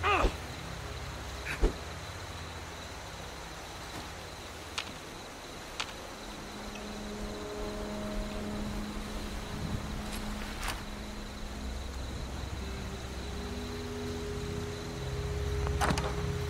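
Footsteps crunch softly on dry ground.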